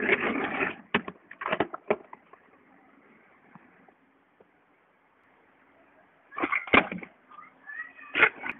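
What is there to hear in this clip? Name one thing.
A skateboard deck clacks sharply against hard pavement.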